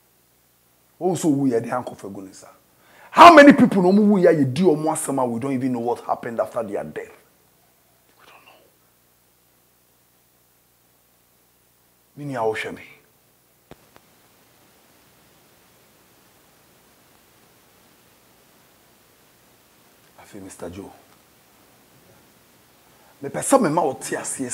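A middle-aged man speaks calmly into a clip-on microphone, close by, in bursts with long pauses.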